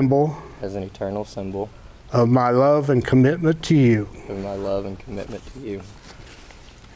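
An elderly man speaks calmly and warmly, close by.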